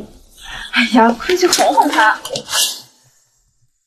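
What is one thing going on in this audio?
A young woman exclaims with animation close by.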